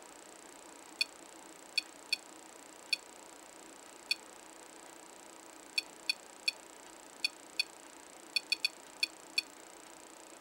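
An electronic device gives short, sharp beeps at uneven intervals.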